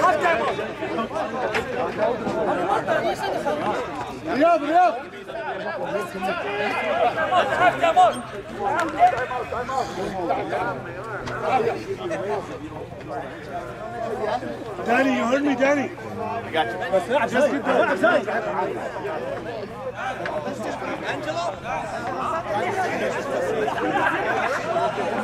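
Several men talk and call out to each other outdoors.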